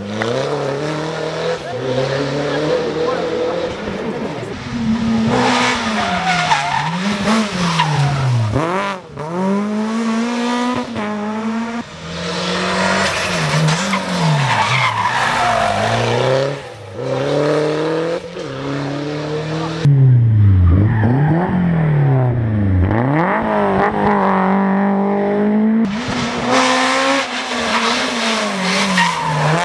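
Rally car engines roar loudly, revving up and down as the cars speed past one after another.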